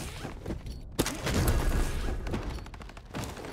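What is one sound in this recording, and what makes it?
A heavy case clicks and creaks open.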